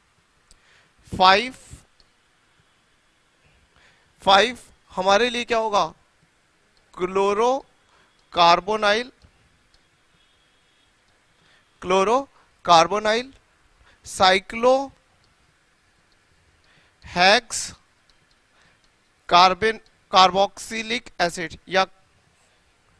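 A man lectures calmly into a close microphone, in short phrases with pauses.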